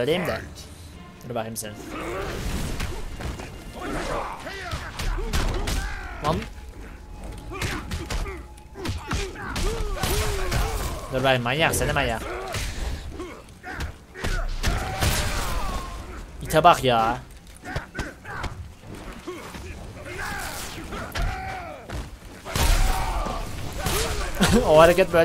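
A young man talks with animation into a headset microphone, close by.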